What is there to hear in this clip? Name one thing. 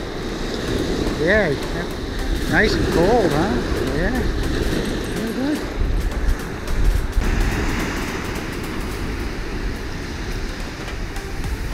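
A dog splashes through shallow water.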